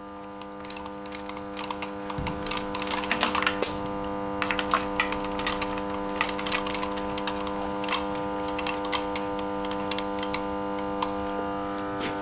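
A hose fitting clicks and rattles as it is screwed into an engine.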